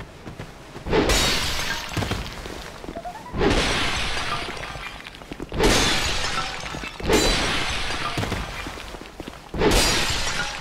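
Clay pots smash and shatter loudly, several times.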